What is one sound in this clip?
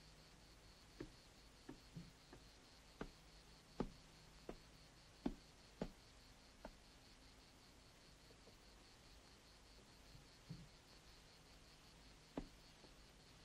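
Footsteps thud on wooden ladder rungs.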